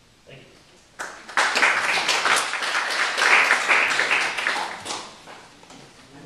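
An audience applauds loudly and then fades.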